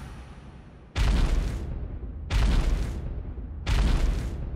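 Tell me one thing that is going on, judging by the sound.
Heavy footsteps thud and boom one after another.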